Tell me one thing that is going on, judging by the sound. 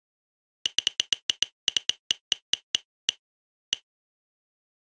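Quick game ticks click in a fast run that slows down and stops.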